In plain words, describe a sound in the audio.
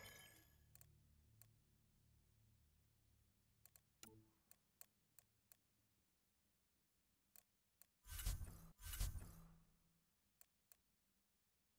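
Short electronic clicks tick now and then.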